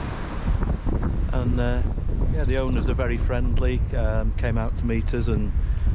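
An older man speaks calmly, close to the microphone.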